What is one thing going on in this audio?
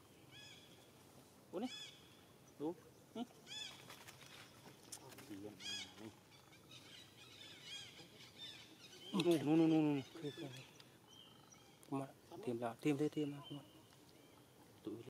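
Water splashes softly as a young monkey wades through a shallow puddle.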